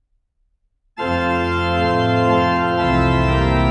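A man plays loud, sustained chords on an organ.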